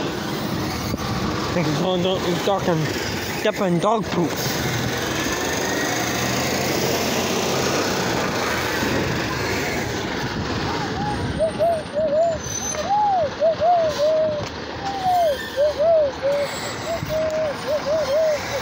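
A garbage truck's engine rumbles nearby as it drives along the street.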